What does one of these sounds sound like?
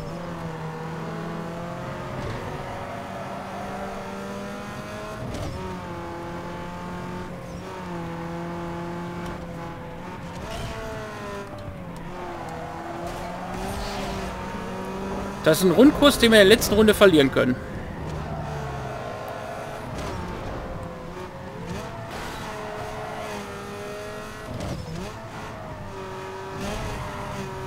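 A race car engine roars at high speed, its pitch climbing and dropping as it shifts gears.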